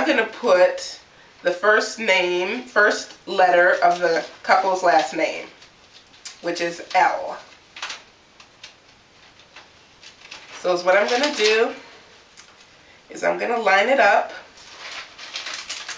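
Plastic wrap crinkles as it is pulled off a roll.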